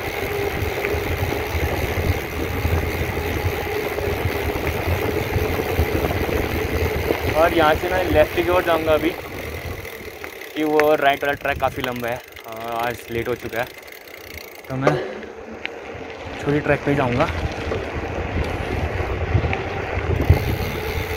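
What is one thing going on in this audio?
Bicycle tyres hum and rattle on a rough road.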